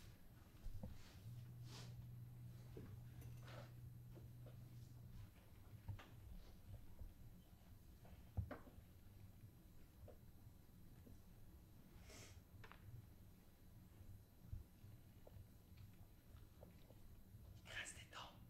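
Footsteps shuffle softly on a sandy floor.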